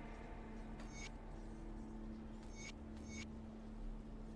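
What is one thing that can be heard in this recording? Short menu clicks tick a few times.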